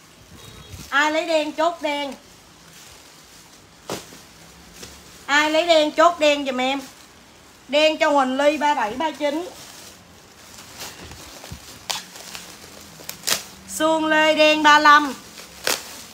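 A young woman speaks close by in a bright, animated voice.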